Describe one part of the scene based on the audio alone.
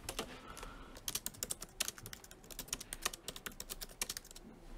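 Fingers tap quickly on a laptop keyboard.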